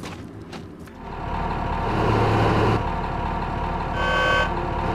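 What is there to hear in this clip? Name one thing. A heavy machine engine starts up and rumbles loudly.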